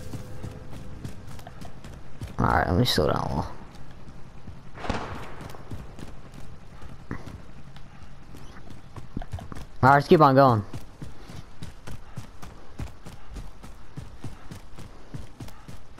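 Quick footsteps run over hard ground and dry grass.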